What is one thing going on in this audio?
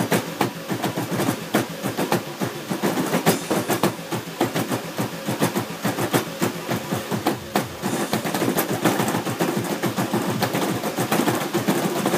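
Feet stomp rapidly on a dance pad.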